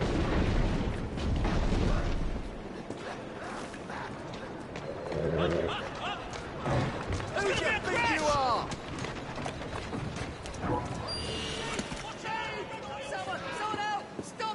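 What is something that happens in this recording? Footsteps run briskly over cobblestones.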